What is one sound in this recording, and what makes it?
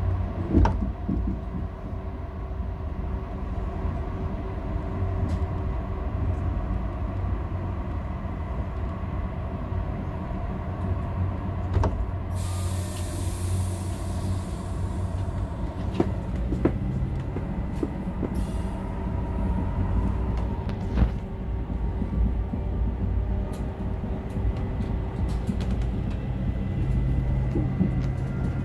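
A train rumbles steadily along a track.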